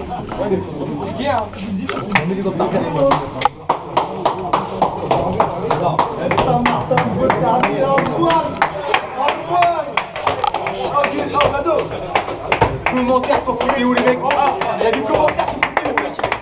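A group of men chant and shout loudly together in an echoing room.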